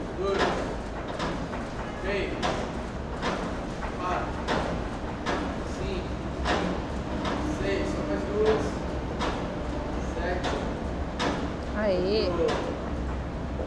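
A rope creaks and rubs as a woman climbs it in a large echoing hall.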